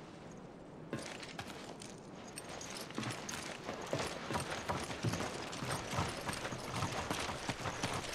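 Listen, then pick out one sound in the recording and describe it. Footsteps crunch on gravel outdoors.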